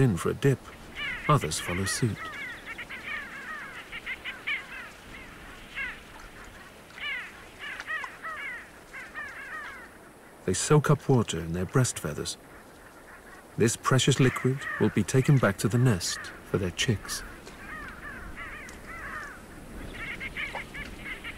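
Small birds chirp and call softly, close by.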